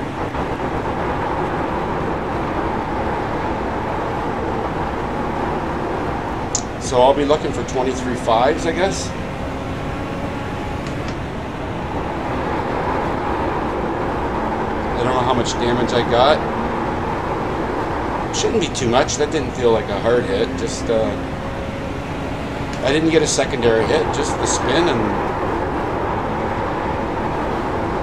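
A race car engine drones steadily at speed.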